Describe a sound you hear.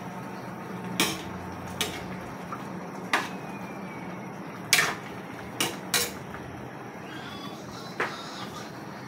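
A metal spatula scrapes and clinks against a steel wok.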